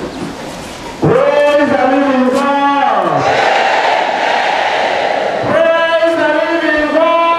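A choir sings loudly with sustained notes.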